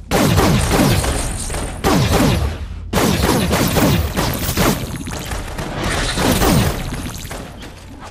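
Crackling energy blasts burst and boom repeatedly.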